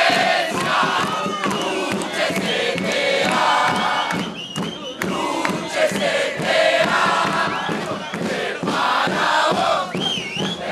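A crowd of men and women cheers and chants loudly close by.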